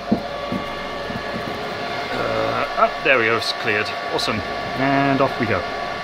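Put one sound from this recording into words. Server fans whir with a steady, high hum.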